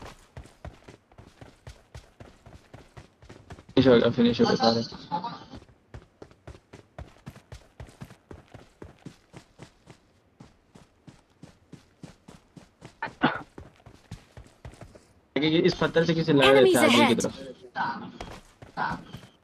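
Footsteps run at a quick, even pace.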